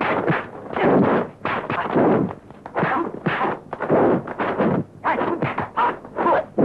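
Fists and blocks thump against bodies and arms.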